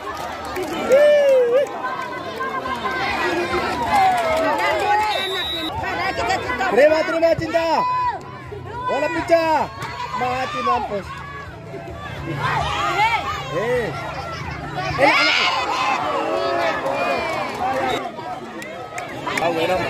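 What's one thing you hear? A large outdoor crowd of spectators cheers and shouts.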